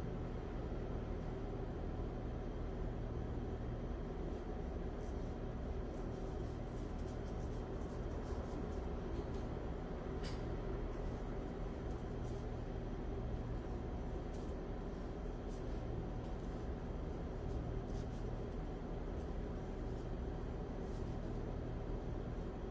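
A brush softly strokes across paper.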